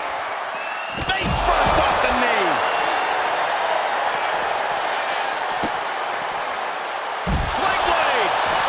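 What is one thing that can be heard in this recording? Heavy bodies slam onto a hard floor with deep thuds.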